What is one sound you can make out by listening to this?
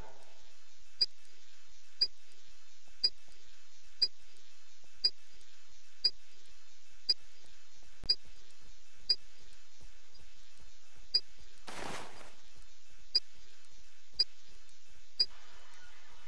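A digital timer beeps once every second.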